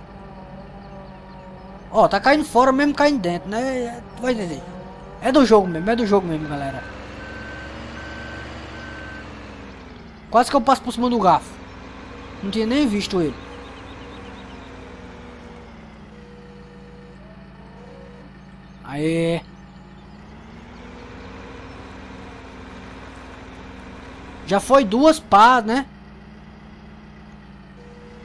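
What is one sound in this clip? A wheel loader's diesel engine hums steadily.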